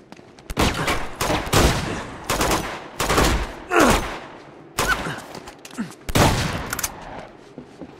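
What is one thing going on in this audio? Gunshots fire in loud bursts and echo.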